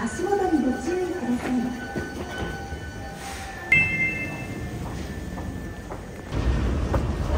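A train rattles along its track with a low rumble.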